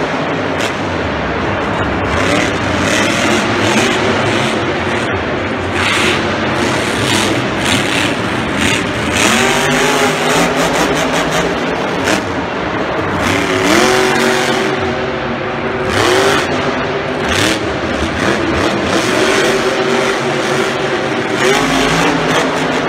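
A monster truck engine roars and revs loudly.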